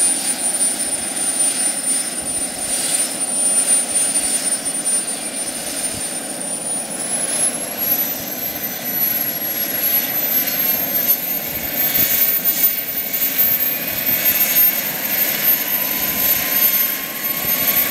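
Model helicopter rotor blades whir and chop the air.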